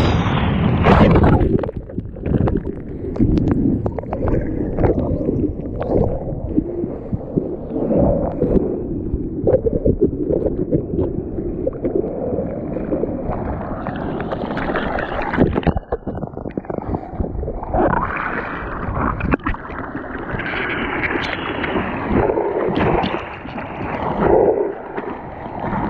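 Rough waves churn and splash all around, close up.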